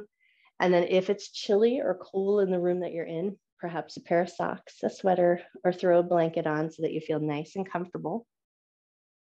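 An adult woman speaks calmly, heard through an online call.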